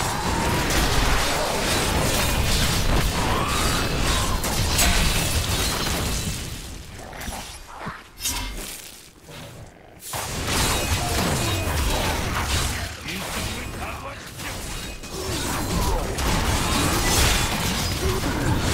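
Video game combat effects crash and boom.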